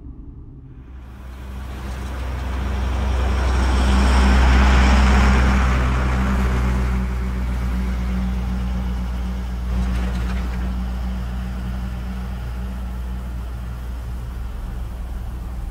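A bus engine rumbles as the bus drives past and away.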